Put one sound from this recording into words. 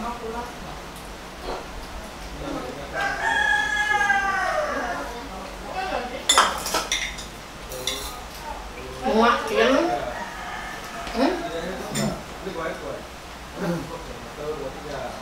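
Spoons clink against plates.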